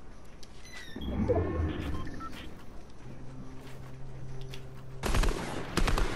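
Wooden building pieces snap into place with hollow knocks.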